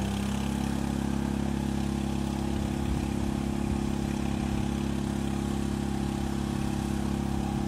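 An off-road vehicle's engine drones steadily.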